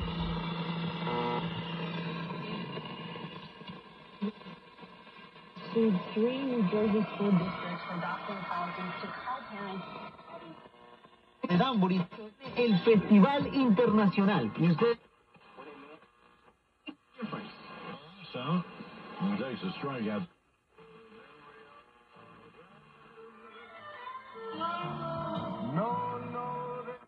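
A radio plays through a small loudspeaker, cutting in and out.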